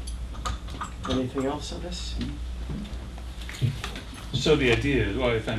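Another man answers briefly.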